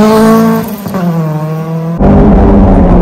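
A rally car engine revs hard as the car speeds past.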